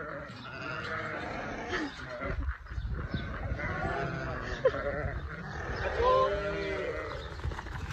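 Sheep bleat loudly nearby.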